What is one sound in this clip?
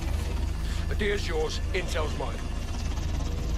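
A man speaks in a low, gravelly voice.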